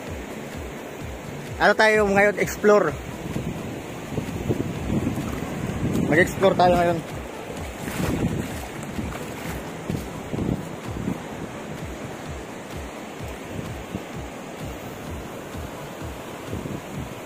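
Shallow water trickles over stones.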